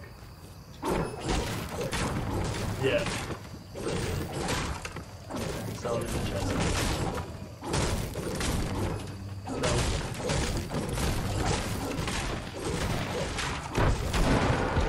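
Gunshots pop rapidly in a video game.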